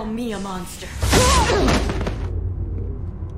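A crackling energy blast roars and booms.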